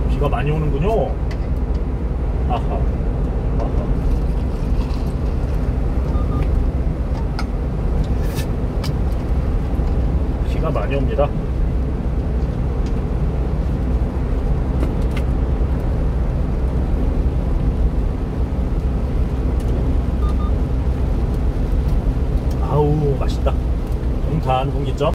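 A light truck drones along at highway speed, heard from inside the cab.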